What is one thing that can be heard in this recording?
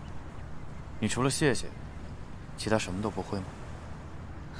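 A young man speaks calmly nearby.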